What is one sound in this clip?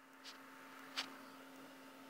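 A finger taps lightly on a hard countertop.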